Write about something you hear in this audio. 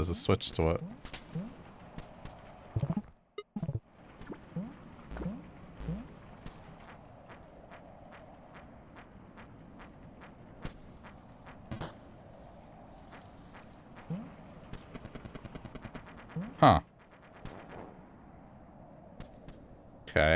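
Short electronic blips and clicks from a video game sound now and then.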